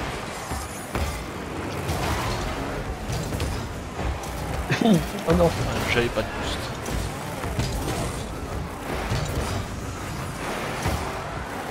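Game cars boost with a rushing whoosh.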